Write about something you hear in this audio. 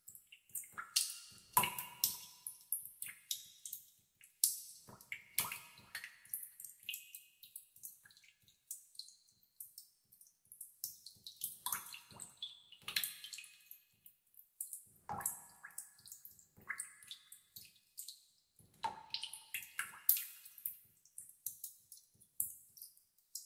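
Water drops plink into still water, one after another.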